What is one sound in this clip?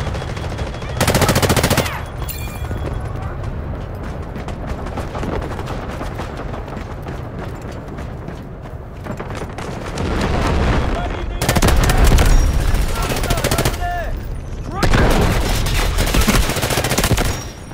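A machine gun fires rapid bursts of loud shots.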